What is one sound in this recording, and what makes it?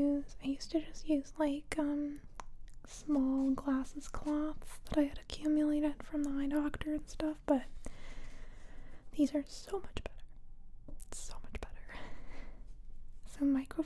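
Magazine pages rustle and crinkle as a hand turns them.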